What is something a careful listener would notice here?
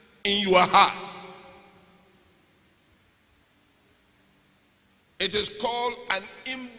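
A man preaches forcefully into a microphone in a large echoing hall.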